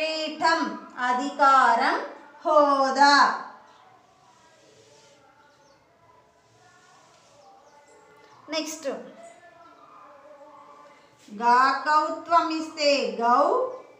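A woman speaks clearly and with emphasis, close by.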